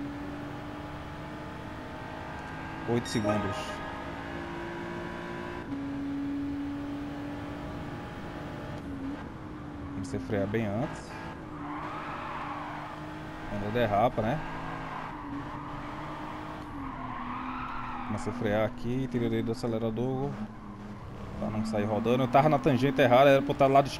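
A race car engine drones steadily, rising and falling with the car's speed.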